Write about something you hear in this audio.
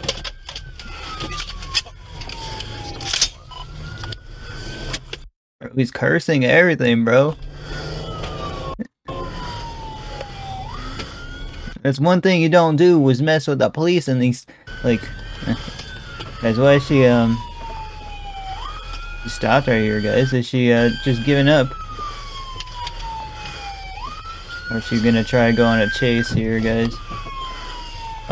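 A police siren wails, rising and falling in long, slow sweeps.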